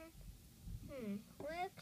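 A small plastic toy taps lightly on cardboard.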